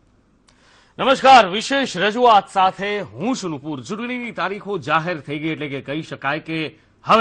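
A man reads out news calmly into a microphone.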